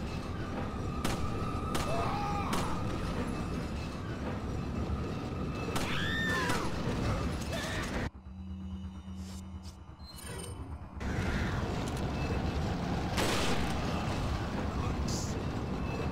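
Gunshots crack sharply now and then.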